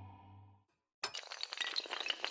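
Dominoes clatter as they topple one after another.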